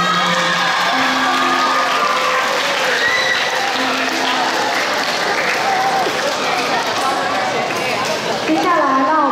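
A teenage boy speaks through a microphone over loudspeakers in a large echoing hall.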